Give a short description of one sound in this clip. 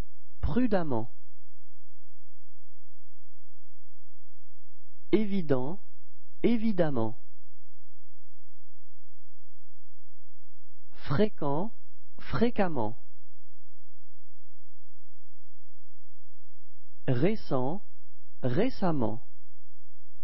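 A woman reads out single words slowly and clearly, with long pauses between pairs.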